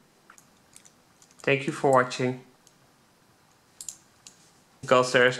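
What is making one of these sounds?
Small metal lock parts click softly.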